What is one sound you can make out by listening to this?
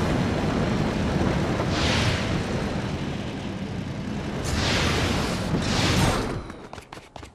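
A hovering vehicle's engine hums and roars.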